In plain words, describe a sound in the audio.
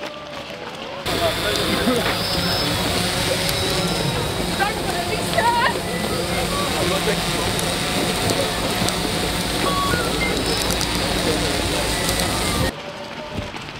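Many footsteps shuffle and patter on a wet road.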